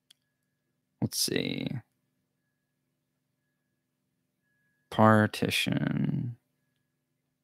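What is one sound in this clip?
A young man speaks calmly and close into a microphone, in short bursts.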